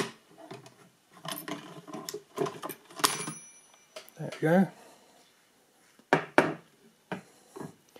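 Metal levers and switches on a machine click and clack.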